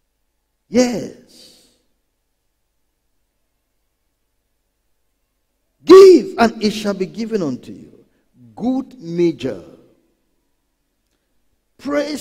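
A man preaches into a microphone with animation, in short bursts between pauses.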